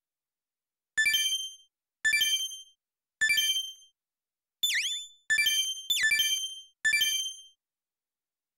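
Short electronic menu chimes ring out several times.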